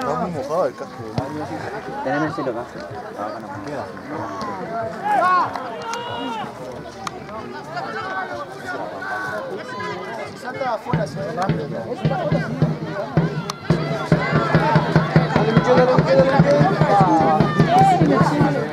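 A crowd of spectators talks and shouts outdoors.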